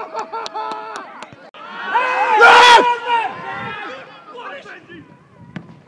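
Men shout and call out loudly outdoors.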